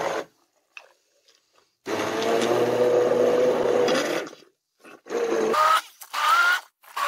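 A blender motor whirs loudly in short bursts.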